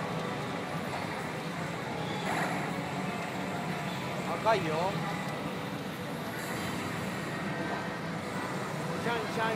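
A pachinko machine blares electronic music and sound effects.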